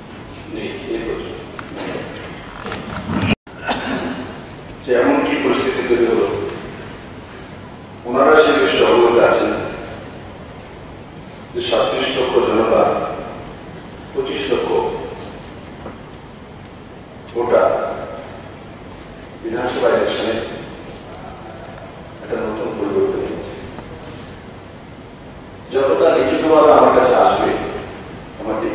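A man speaks slowly into a microphone in short phrases, pausing between them.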